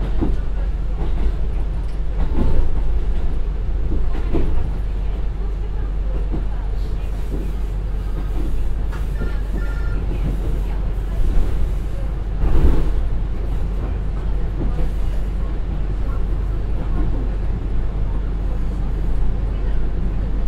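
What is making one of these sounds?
A diesel train engine rumbles steadily up close.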